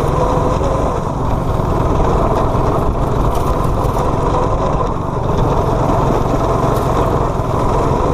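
A small go-kart engine roars steadily close by.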